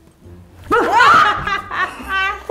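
A young woman screams in fright close by.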